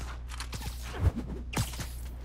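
A body thuds hard against a metal railing.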